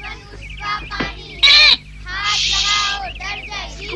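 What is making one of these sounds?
A bird squawks loudly.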